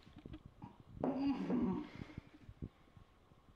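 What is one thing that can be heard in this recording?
A young man grunts in pain.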